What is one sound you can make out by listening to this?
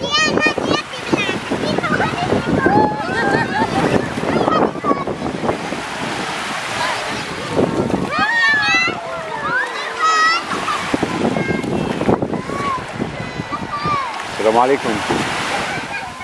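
Small waves break and wash on a sandy shore.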